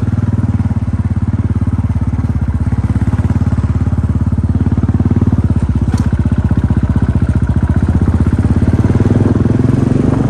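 A motorcycle engine thuds steadily at low speed, close by.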